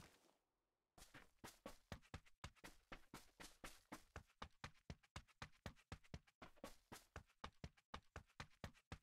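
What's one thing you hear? Footsteps thud quickly and evenly over grass.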